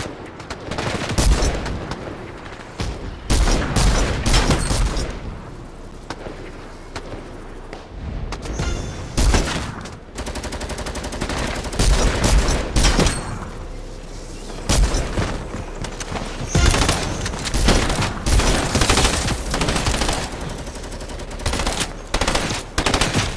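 Game gunshots crack in quick bursts.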